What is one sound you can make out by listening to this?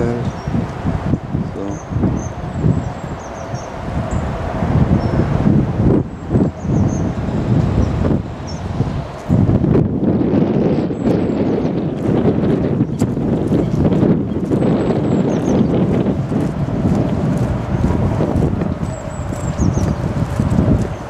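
Wind buffets loudly outdoors, rumbling and gusting.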